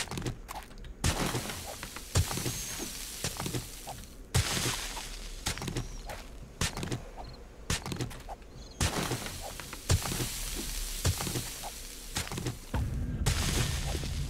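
Chunks of rock crumble and tumble down.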